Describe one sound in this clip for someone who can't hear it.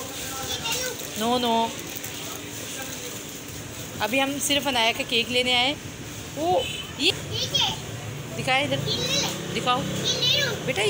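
A little boy talks close by in a high voice.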